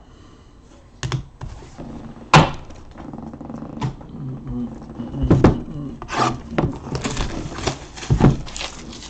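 Plastic card cases click and clatter as they are handled.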